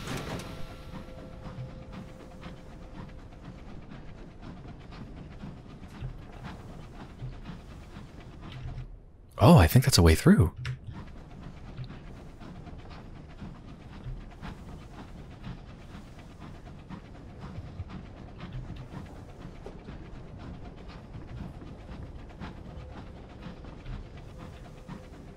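A small submarine's engine rumbles steadily underwater.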